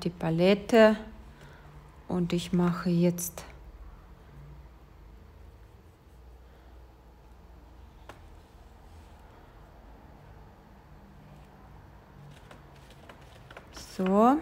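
A paintbrush swishes softly across paper.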